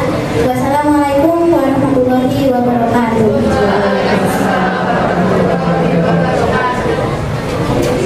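A young girl sings through a microphone.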